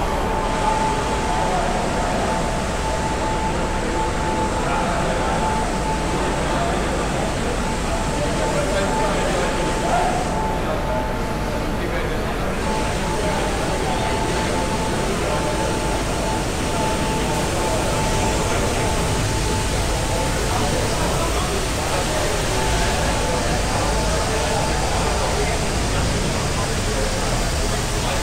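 A crowd of people talks in a large echoing space.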